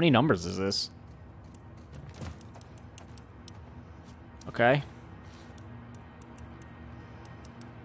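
A safe's combination dial clicks softly as it turns.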